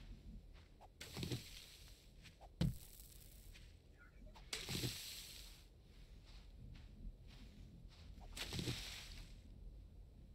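Dry brush rustles as it is pushed aside.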